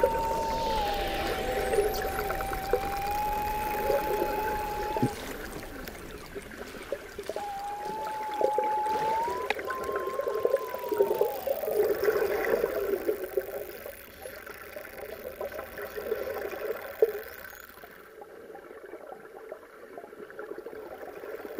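Dolphins whistle underwater.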